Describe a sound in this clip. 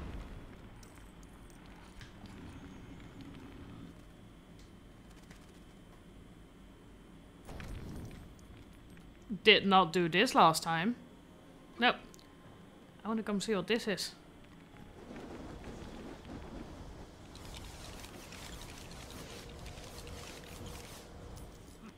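A magic spell hums and crackles.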